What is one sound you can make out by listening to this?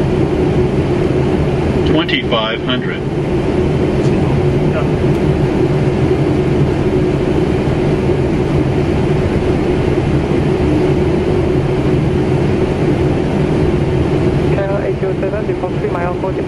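A steady loud roar of engines and rushing air goes on.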